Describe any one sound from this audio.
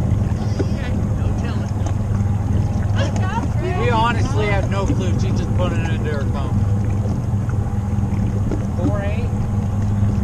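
A boat motor hums steadily nearby.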